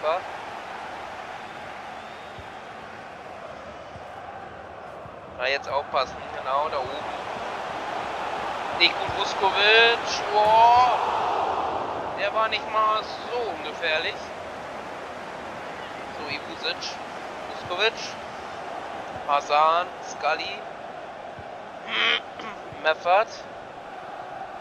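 A large stadium crowd roars steadily, swelling for a while and then settling.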